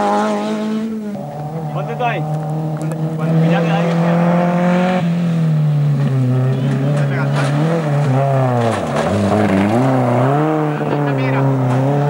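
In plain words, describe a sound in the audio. A rally car engine roars and revs up and down as the car speeds past.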